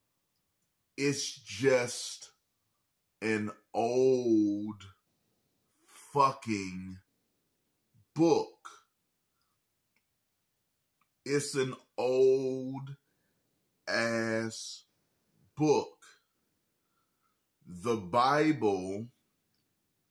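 A man speaks with animation close to a microphone, in short bursts with pauses.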